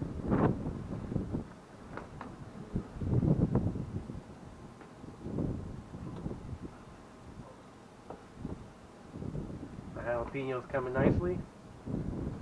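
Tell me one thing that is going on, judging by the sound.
A metal utensil scrapes and taps on a grill grate.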